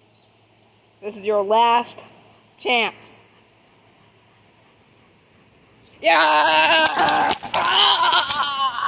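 A bulldog barks.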